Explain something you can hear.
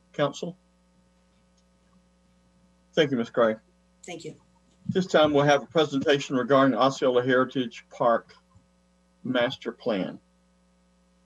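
An older man speaks calmly over an online call, in short bursts with pauses.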